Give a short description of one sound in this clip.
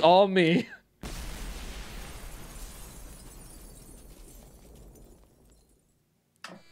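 A deep explosion rumbles and slowly fades.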